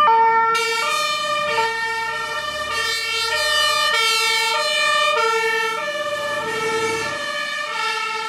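A truck engine rumbles as it drives past.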